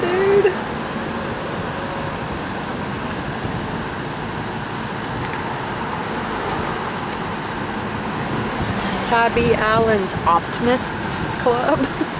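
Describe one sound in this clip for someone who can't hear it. A car engine hums and tyres rumble steadily on the road from inside the car.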